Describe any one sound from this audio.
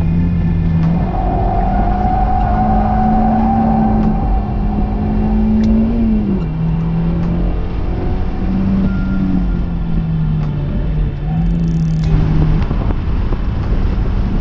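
Wind rushes past an open-top car.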